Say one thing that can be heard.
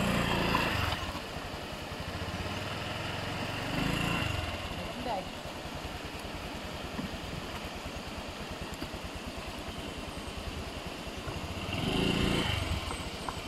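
A scooter engine idles with a rapid, even putter, revving up now and then.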